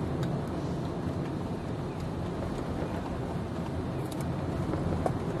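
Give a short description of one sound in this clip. A car engine hums steadily while driving along a street.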